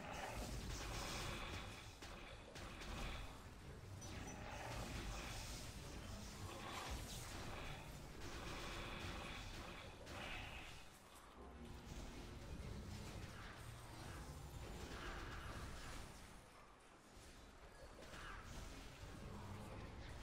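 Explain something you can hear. Magic blasts and sword strikes crash and whoosh in quick bursts.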